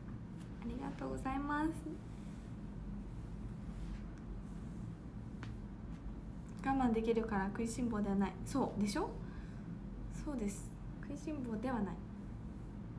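A young woman speaks casually and close by, in short bursts with pauses.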